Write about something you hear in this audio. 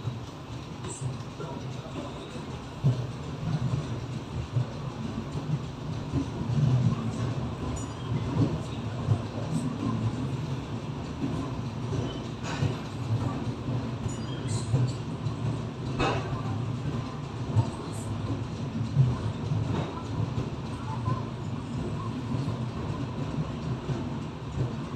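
A train rumbles slowly out of a station.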